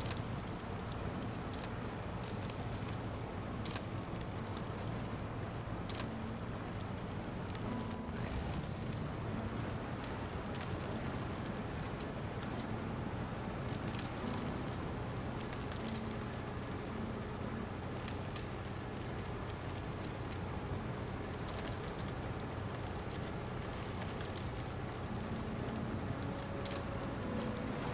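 A heavy truck engine rumbles steadily as it drives.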